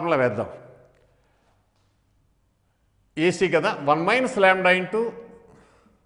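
An elderly man speaks calmly, explaining.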